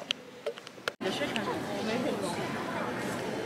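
A crowd of adults murmurs and chatters in a large echoing hall.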